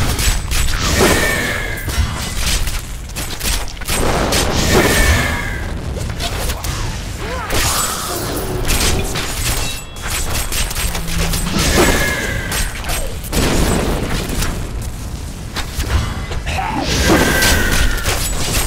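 Weapons clash and strike over and over.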